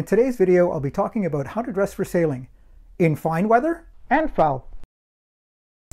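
A middle-aged man speaks calmly and clearly into a clip-on microphone.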